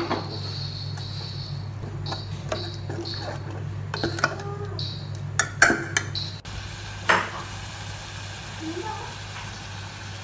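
Thick sauce bubbles in a pot.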